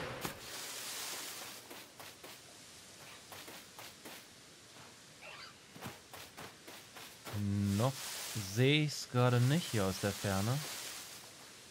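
Quick footsteps run through grass.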